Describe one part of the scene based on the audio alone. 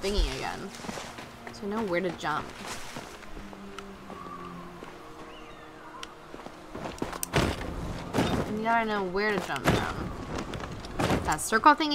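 Quick footsteps patter over the ground.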